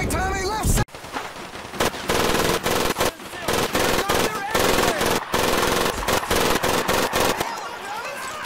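A heavy machine gun fires in fast rattling bursts.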